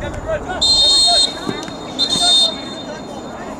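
A referee's whistle blows two sharp, shrill blasts.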